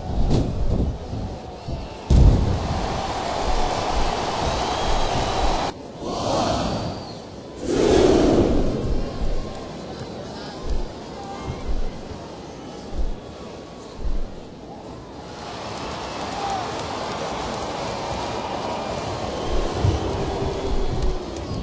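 An arena crowd cheers and murmurs in the background.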